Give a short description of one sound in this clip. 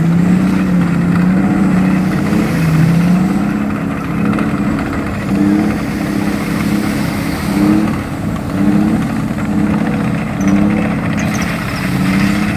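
Water splashes and churns as vehicles drive out onto the shore.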